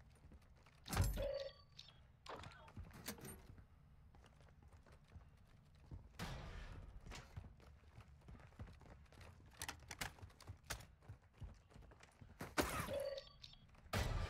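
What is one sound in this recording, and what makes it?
Short item pickup chimes ring out.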